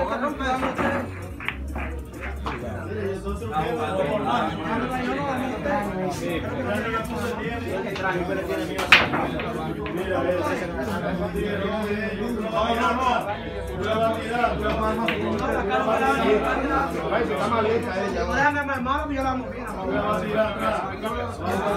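A crowd of men talk and chatter nearby.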